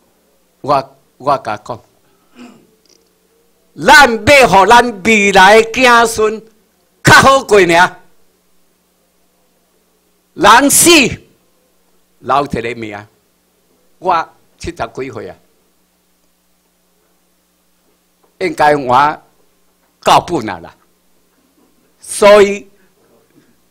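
An older man speaks into a microphone in bursts, with pauses, heard over a loudspeaker in a room.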